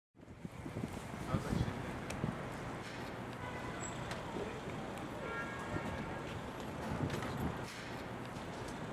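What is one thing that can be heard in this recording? City street traffic rumbles steadily outdoors.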